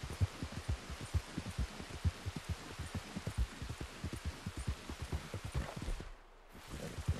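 A horse gallops with quick, heavy hoofbeats.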